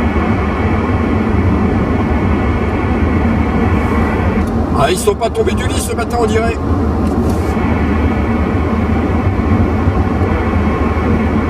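Road and tyre noise rumbles inside a car driving on a highway.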